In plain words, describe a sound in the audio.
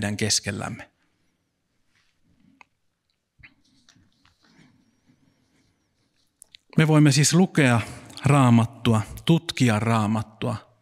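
A man speaks calmly through a microphone and loudspeakers in an echoing hall, pausing between phrases.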